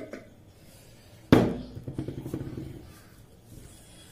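A jar lid clicks and knocks.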